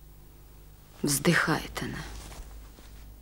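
A young woman talks softly.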